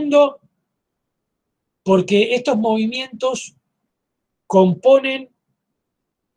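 A middle-aged man speaks calmly through an online call, in short phrases with pauses.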